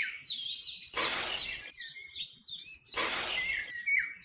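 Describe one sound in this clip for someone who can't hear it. A small trowel scrapes and digs into sand.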